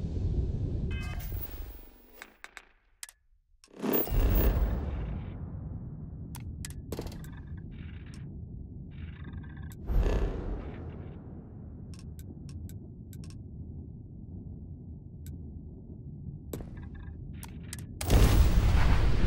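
Menu selections click and blip sharply now and then.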